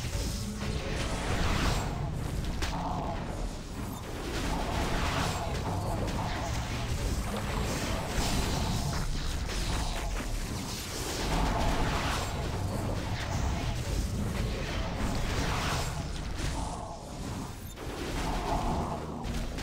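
Magic spells burst and crackle during a fierce fight.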